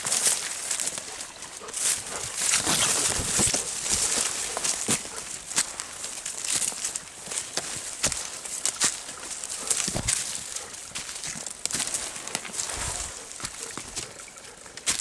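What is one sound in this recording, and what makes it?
Leaves and bamboo rustle loudly close by.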